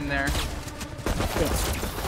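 A rifle fires a shot.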